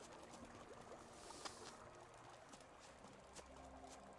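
Footsteps fall on a dirt path.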